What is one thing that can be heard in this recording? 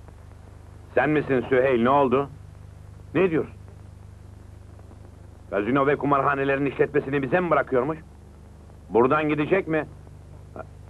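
A middle-aged man speaks loudly into a telephone.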